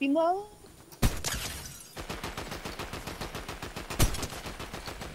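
A rifle shot rings out.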